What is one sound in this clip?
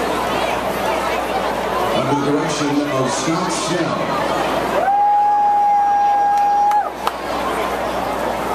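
A marching band plays loudly outdoors.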